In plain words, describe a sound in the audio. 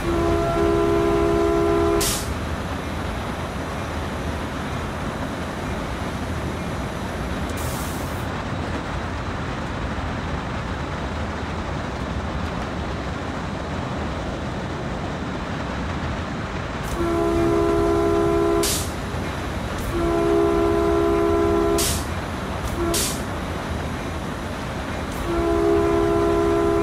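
A locomotive horn blares in several long blasts.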